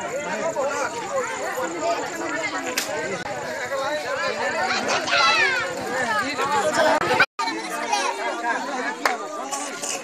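A crowd of men and women talk and shout excitedly close by.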